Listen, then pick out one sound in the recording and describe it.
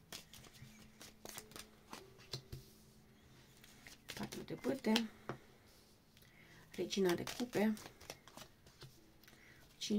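Playing cards are laid down with soft taps.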